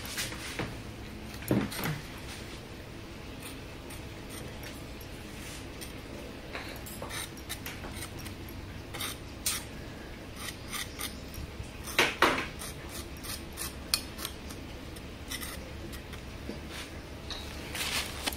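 A metal fork scrapes and taps against a textured surface.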